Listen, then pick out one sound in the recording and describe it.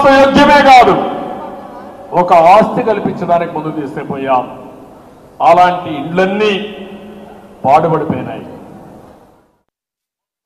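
An older man speaks forcefully through a microphone in a large echoing hall.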